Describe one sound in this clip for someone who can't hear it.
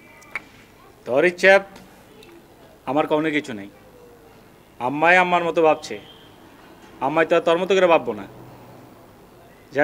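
A middle-aged man speaks earnestly, close by.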